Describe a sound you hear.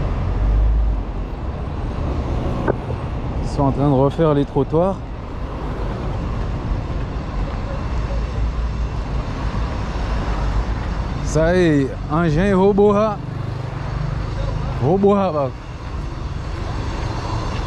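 Traffic rumbles past on a nearby street outdoors.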